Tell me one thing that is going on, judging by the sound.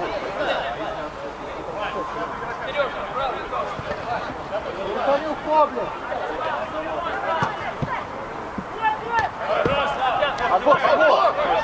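Men shout to each other across an open outdoor pitch.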